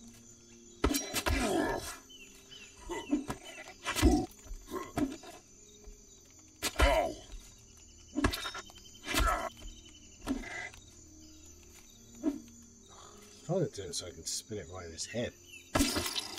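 A creature growls and roars in pain.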